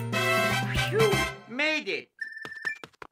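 A cheerful game fanfare plays.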